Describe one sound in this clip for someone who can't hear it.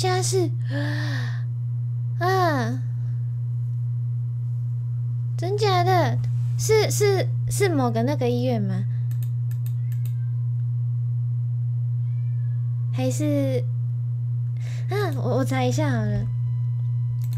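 A young woman speaks close into a microphone.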